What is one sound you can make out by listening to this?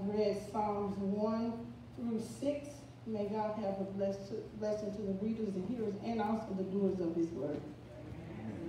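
An elderly woman sings into a microphone, heard through a loudspeaker in an echoing room.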